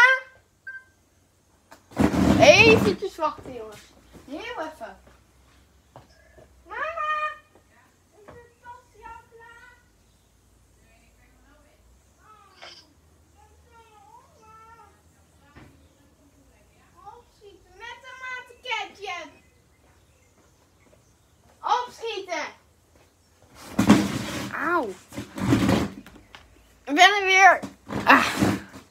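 A teenage boy talks and calls out close by, in bursts with pauses.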